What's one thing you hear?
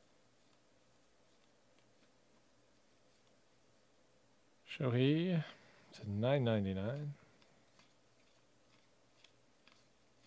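Trading cards shuffle and flick softly between hands.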